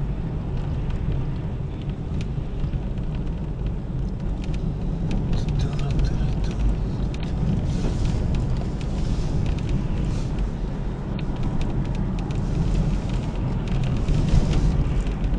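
A car engine hums steadily and tyres rumble on the road from inside the car.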